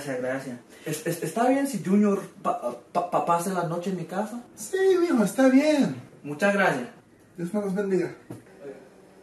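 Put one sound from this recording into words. A man speaks casually, close by.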